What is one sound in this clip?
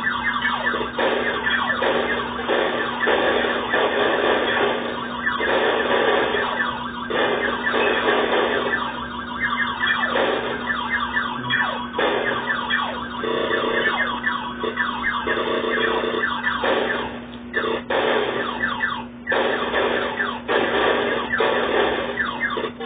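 Rapid laser zaps fire again and again from an arcade game.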